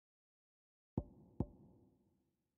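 Soft menu clicks tick twice.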